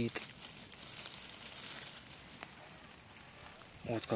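Dry grass rustles as a mushroom is pulled up from the ground.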